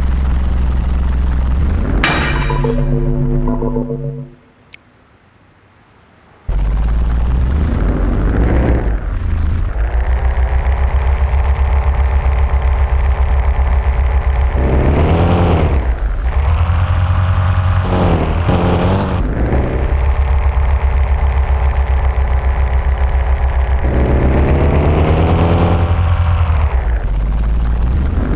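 A van engine hums and revs up and down as it drives.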